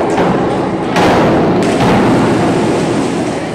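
A diver splashes into the water.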